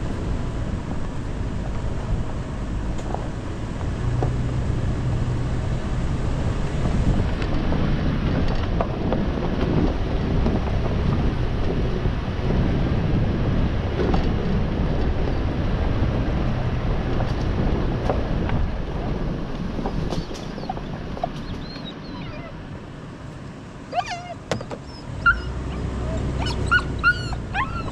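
Tyres crunch over leaves and dirt on a bumpy track.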